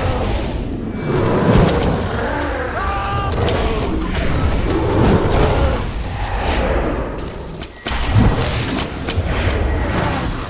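A large beast roars loudly.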